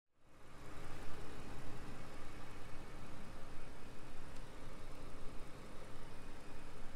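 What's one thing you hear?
A large sedan's twin-turbo W12 engine idles as the car creeps along.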